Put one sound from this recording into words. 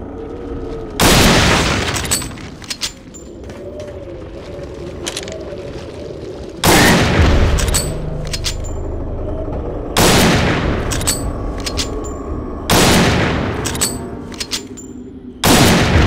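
A rifle fires loud single shots, each followed by a rolling echo.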